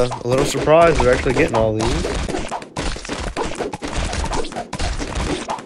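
Balloons pop rapidly with quick, sharp bursts.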